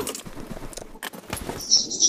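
Gunshots crack in a quick burst.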